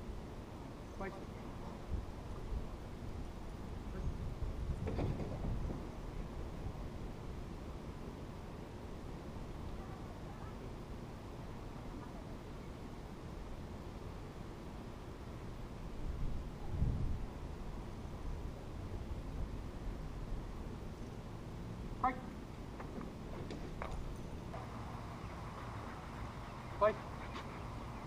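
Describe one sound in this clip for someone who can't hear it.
A dog barks in short bursts.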